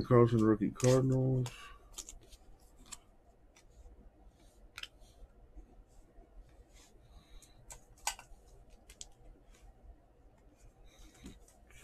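Glossy trading cards slide and tick against each other in hands.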